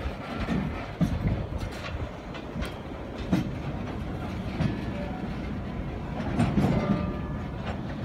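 Metal clanks and bangs now and then in the distance.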